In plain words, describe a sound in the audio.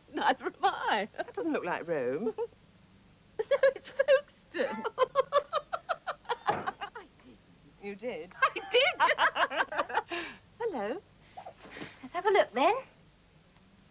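A middle-aged woman talks with animation close by.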